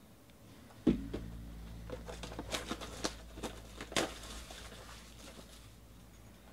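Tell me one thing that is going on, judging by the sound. Cardboard and plastic wrapping rustle and crinkle as a box is handled.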